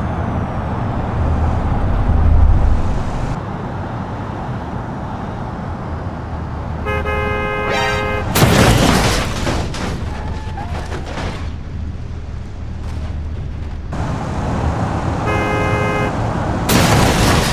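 A car engine rumbles as a car speeds along a road.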